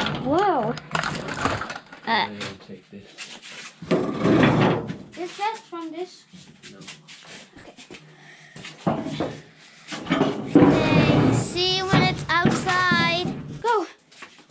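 A metal bin clunks and scrapes as it is handled.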